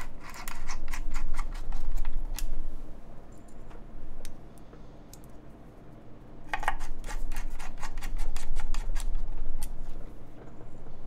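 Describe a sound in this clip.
Hands tap and knock on a hard plastic case.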